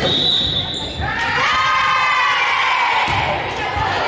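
Young women cheer together loudly.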